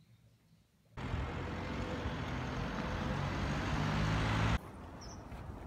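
Traffic hums along a city street.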